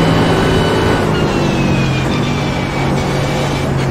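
A race car engine slows with a falling whine as it brakes.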